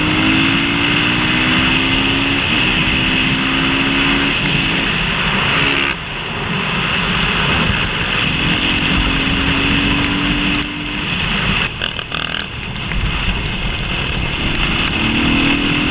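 A motorcycle engine hums steadily and rises in pitch as it speeds along.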